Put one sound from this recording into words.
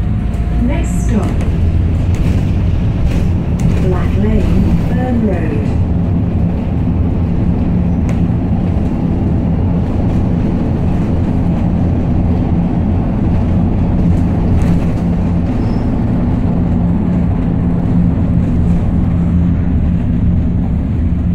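A bus rattles and clatters over the road.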